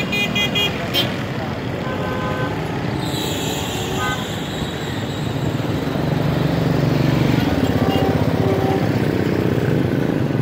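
Motorbike engines putter past close by.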